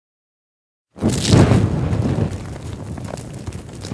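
A burst of flame roars with a loud whoosh.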